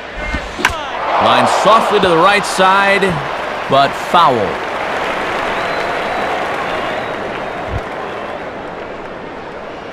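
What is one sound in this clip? A large crowd cheers loudly, then fades.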